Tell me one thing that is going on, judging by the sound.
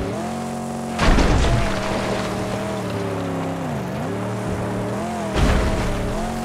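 A car lands hard with a heavy thud.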